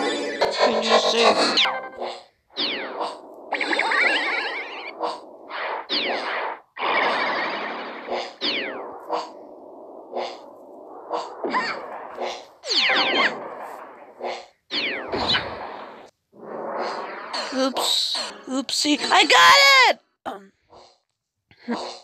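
Electronic game sound effects whoosh and zap in quick bursts.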